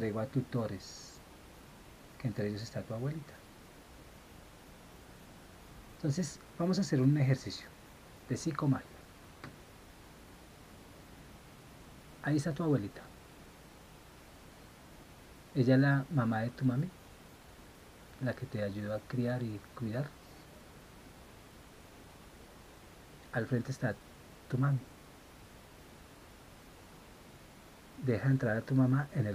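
A man speaks close by, calmly, in short bursts with long pauses.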